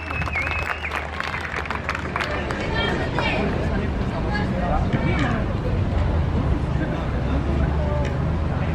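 A crowd of people talk and call out nearby outdoors.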